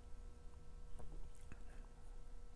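A glass is set down on a table with a soft knock.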